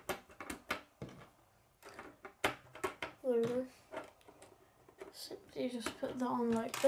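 Plastic toy pieces click and snap together.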